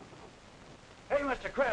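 A man speaks abruptly nearby.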